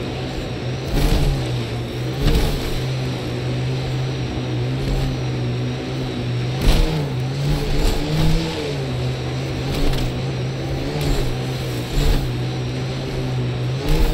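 A vehicle's wheels thump and bump over rough ground.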